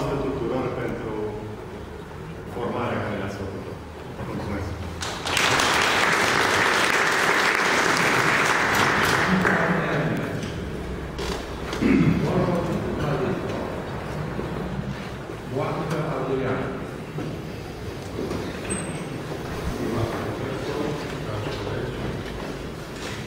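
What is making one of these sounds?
A man speaks loudly in a large echoing hall.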